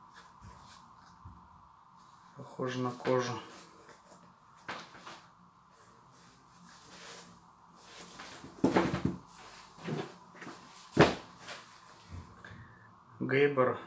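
Leather boots creak and rustle as hands turn them over.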